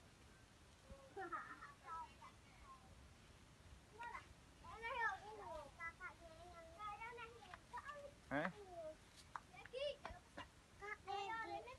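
Young children shout and chatter close by outdoors.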